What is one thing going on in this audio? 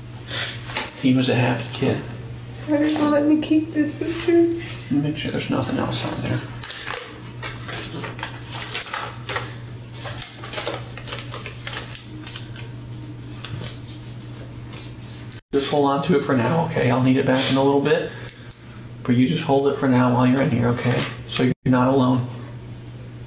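A young woman speaks quietly in a small room, heard through a ceiling microphone.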